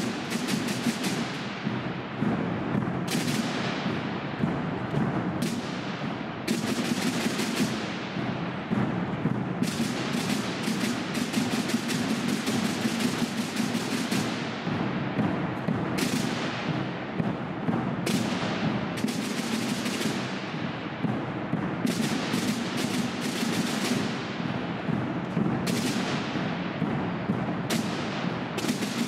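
A drum and brass band plays loudly in a large echoing hall.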